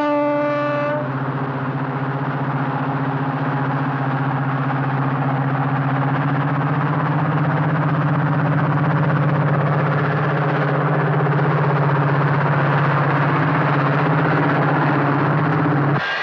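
A diesel locomotive engine rumbles steadily at idle close by.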